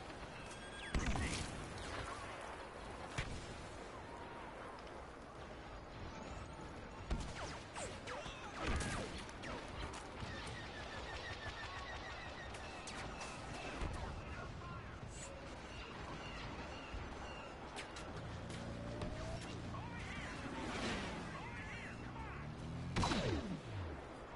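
Sharp rifle shots crack now and then.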